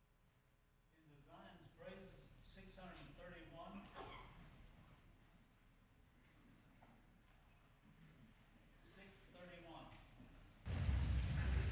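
A crowd of adults murmurs and chats in a large echoing hall.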